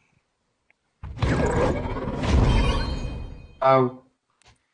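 A fiery spell bursts with a whoosh in a video game.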